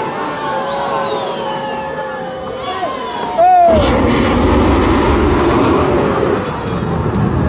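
A rocket roars loudly as it streaks into the sky.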